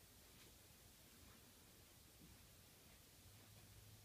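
Footsteps shuffle softly on carpet.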